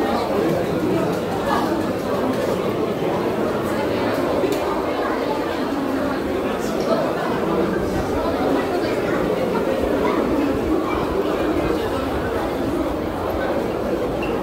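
Footsteps shuffle on a hard floor.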